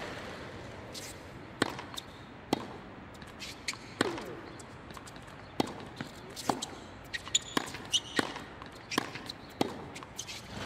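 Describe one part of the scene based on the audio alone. Tennis balls are struck sharply by rackets in a quick rally.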